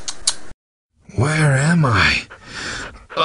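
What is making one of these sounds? A dazed young man speaks slowly.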